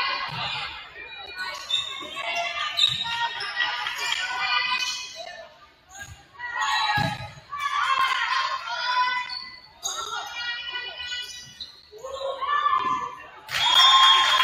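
Sneakers squeak sharply on a hard court in a large echoing gym.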